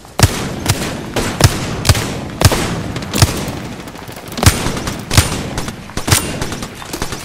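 A gun fires single loud shots in a steady rhythm.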